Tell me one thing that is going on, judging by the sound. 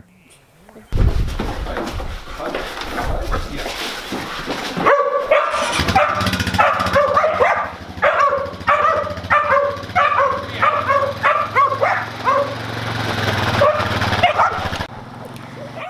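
A quad bike engine idles and runs with a low rumble.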